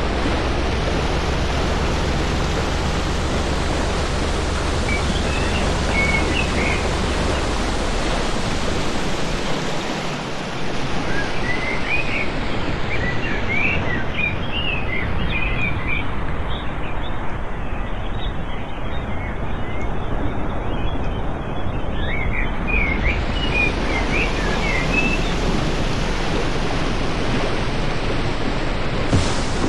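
A boat engine roars steadily.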